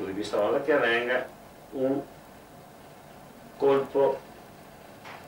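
An elderly man speaks calmly and haltingly, close by.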